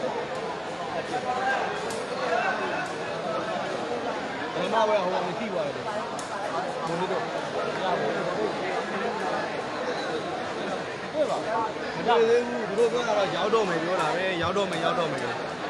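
A crowd of young men and women chatters and calls out all around in a large echoing hall.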